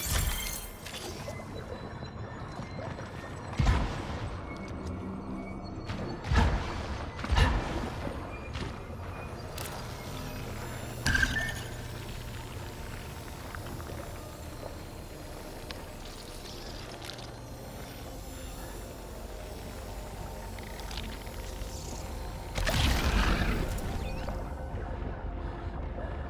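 Footsteps crunch over gravelly ground.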